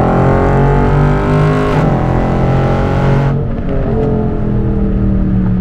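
A car engine roars loudly, its pitch shifting as the gears change.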